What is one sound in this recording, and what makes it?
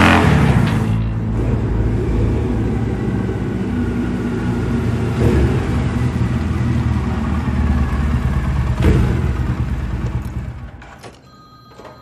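A motorcycle engine echoes in a large enclosed space as it approaches and idles.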